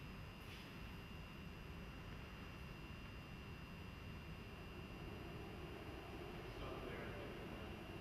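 Footsteps echo faintly across a large, empty hall.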